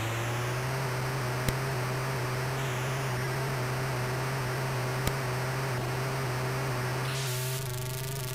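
Tyres screech and hiss in a long skid.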